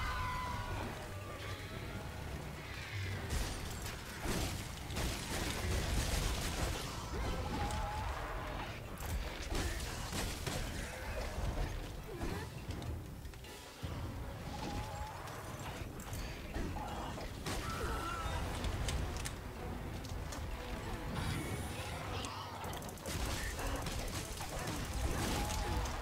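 A huge winged beast roars and thuds heavily on the ground.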